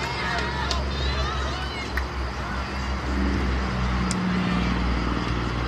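Young women shout to each other in the distance across an open field.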